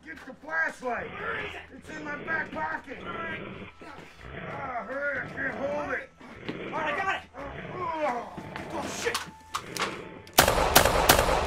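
Men shout and scream in a scuffle.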